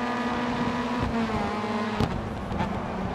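A racing car engine shifts down a gear.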